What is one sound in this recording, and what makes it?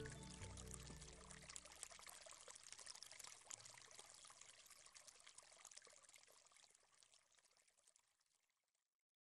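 Water rushes and splashes over rocks nearby.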